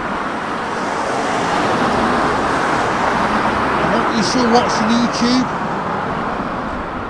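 A van drives past close by.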